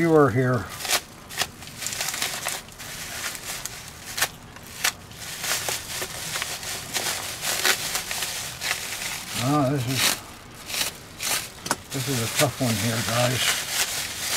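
A man speaks briefly and calmly close by.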